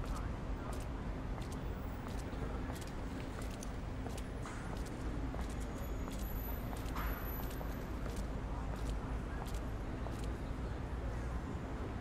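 Footsteps tap steadily on a hard platform.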